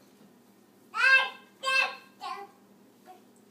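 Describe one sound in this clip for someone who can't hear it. A toddler squeals and babbles excitedly close by.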